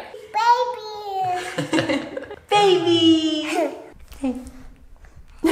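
A toddler girl squeals and babbles with delight close by.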